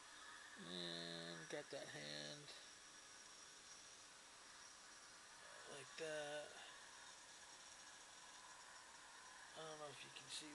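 A hand brushes across a glossy magazine page.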